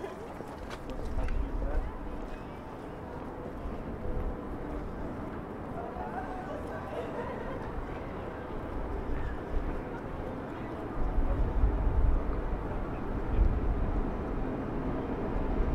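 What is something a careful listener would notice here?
Wind rumbles loudly outdoors in gusts.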